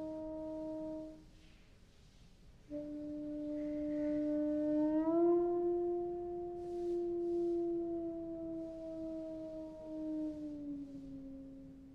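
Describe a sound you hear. Two trombones play long, sustained notes that slide slowly in pitch.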